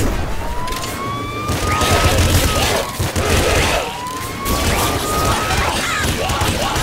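Video game gunfire and explosions crackle in quick bursts.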